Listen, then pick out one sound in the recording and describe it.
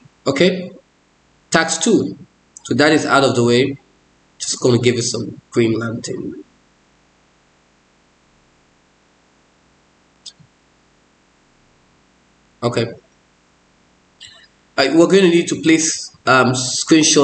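A man talks calmly into a nearby microphone, explaining in short bursts with pauses.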